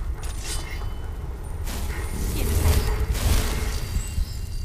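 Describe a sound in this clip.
A magic spell hums and crackles softly.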